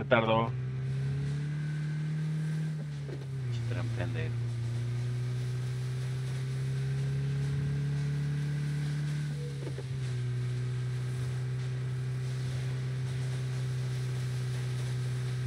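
A car engine hums steadily and its pitch shifts now and then.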